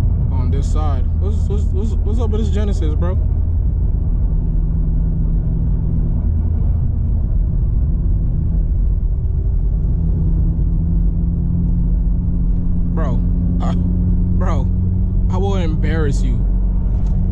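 A car engine revs hard, rising in pitch again and again.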